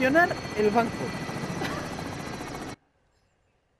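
A helicopter rotor thumps overhead.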